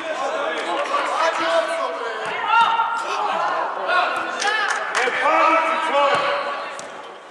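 Children shout to each other while playing.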